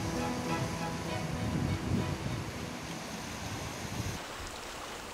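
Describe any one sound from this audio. Waves wash over rocks.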